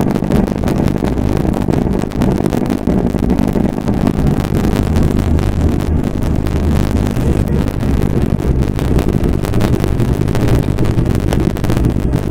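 A diesel semi-truck engine drones while cruising on a highway.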